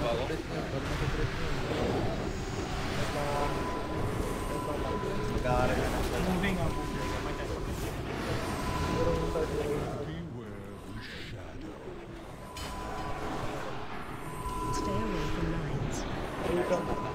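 Magic blasts and combat effects crackle and boom in a busy fight.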